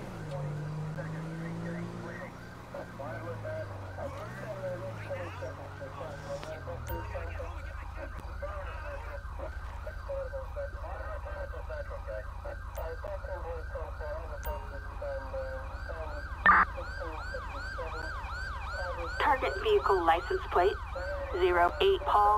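A police siren wails in a fast, repeating yelp.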